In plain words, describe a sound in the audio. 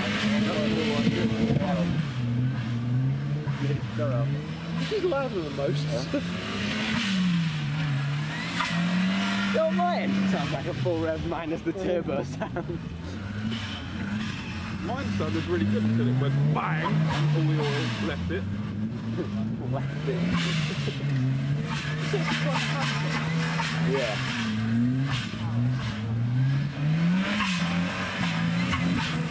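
A car engine revs up and down repeatedly, close by.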